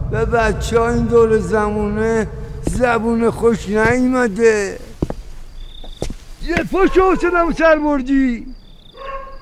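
A man sings loudly and drawn out, close by.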